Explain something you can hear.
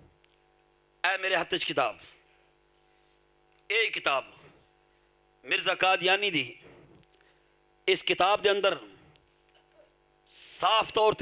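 A man speaks with feeling into a microphone, in short phrases with pauses, heard through loudspeakers.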